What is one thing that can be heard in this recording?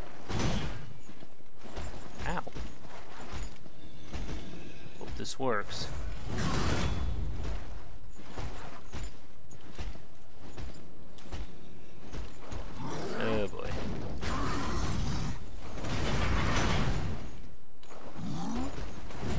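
Metal weapons clash and strike a shield in a fight.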